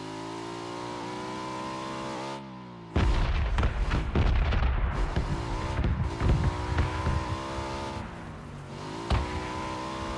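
A motorcycle engine hums steadily, its pitch dipping and rising as it changes speed.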